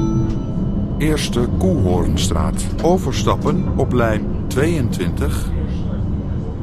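Tram wheels squeal on a curve.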